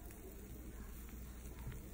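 Shredded cheese patters lightly onto food.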